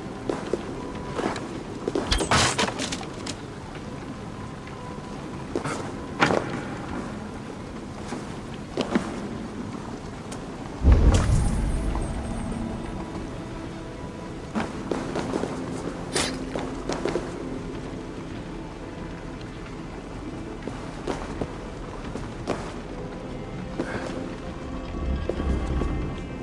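Footsteps tap on a stone floor.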